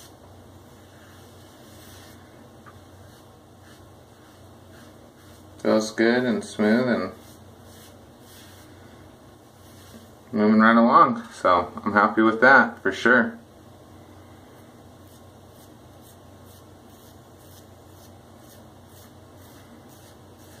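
A razor scrapes softly over a scalp.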